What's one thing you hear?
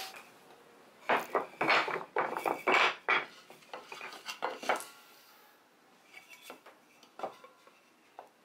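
Wooden boards knock and clatter together.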